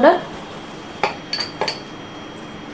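A ceramic bowl clinks lightly.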